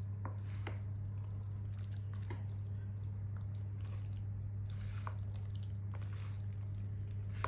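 A spatula and fork stir thick macaroni salad in a plastic bowl with a soft, wet squelch.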